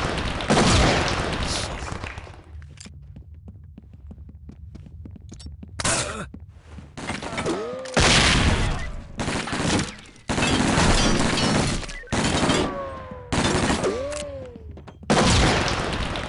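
Loud gunshots bang in bursts and echo.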